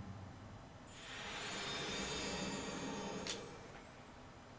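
A bright, sparkling shimmer rings out and fades.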